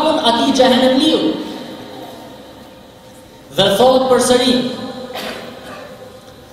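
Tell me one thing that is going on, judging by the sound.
A man speaks with emphasis into a microphone, his voice echoing in a large hall.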